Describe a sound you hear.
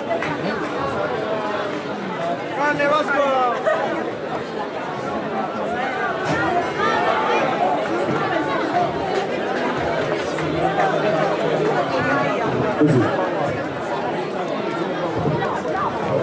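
Several men talk casually a short distance away.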